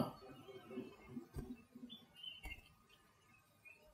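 A woman speaks quietly, close by.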